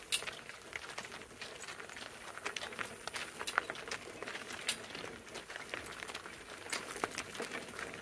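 Hooves clop on gravel.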